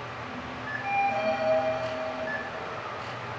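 An elevator chime rings on arrival.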